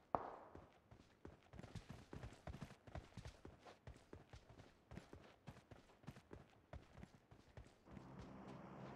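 Footsteps crunch quickly over dry ground.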